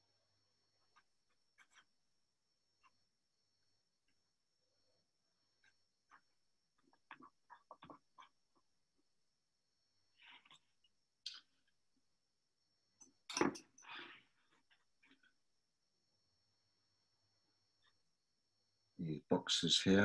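A paintbrush brushes and taps softly on paper.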